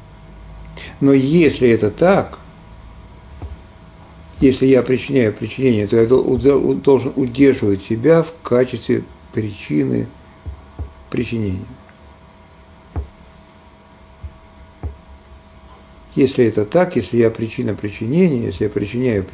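An elderly man speaks calmly into a nearby microphone, in short bursts with pauses.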